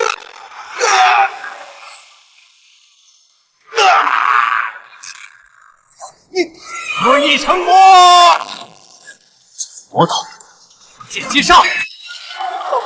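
A man shouts angrily at close range.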